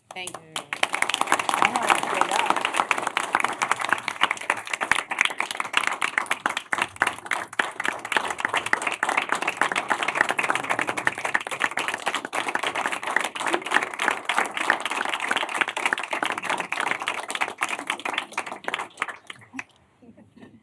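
A room full of people applauds loudly.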